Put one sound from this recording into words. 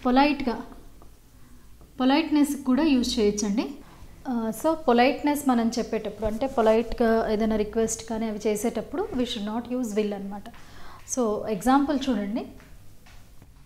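A woman speaks clearly and calmly into a close microphone.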